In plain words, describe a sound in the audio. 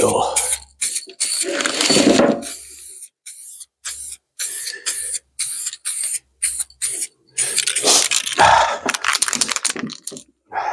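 Spray hisses from a can in short bursts.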